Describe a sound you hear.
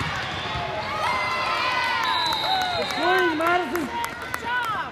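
Young women and girls cheer and shout after a point.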